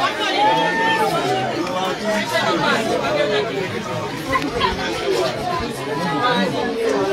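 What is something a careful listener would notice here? A crowd of men and women talk and shout excitedly nearby.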